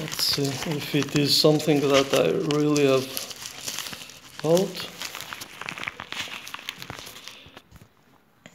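Plastic bubble wrap crinkles and rustles under fingers.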